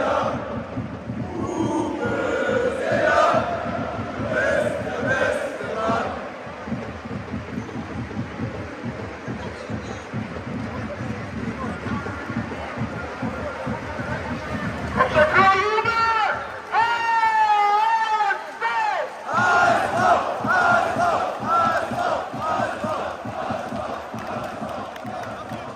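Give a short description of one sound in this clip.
A huge stadium crowd sings and chants loudly.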